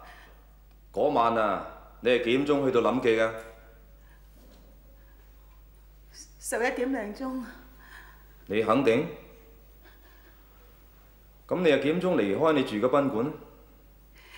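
A middle-aged man questions sternly and calmly.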